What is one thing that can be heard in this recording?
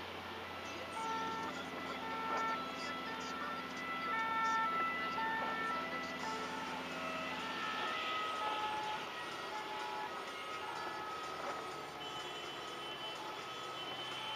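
An ambulance siren wails nearby with alternating tones.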